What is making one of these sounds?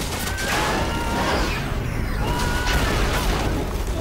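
Engines whine with rising and falling pitch.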